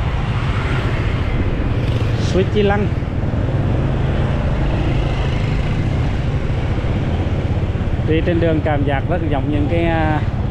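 Passing scooters buzz by on the street.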